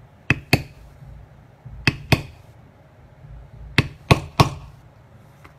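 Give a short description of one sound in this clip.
A mallet taps sharply on a leather tool, in pairs of knocks.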